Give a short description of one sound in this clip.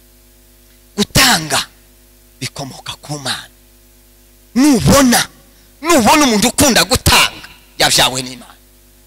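A man preaches forcefully through a microphone in a large echoing hall, in loud bursts.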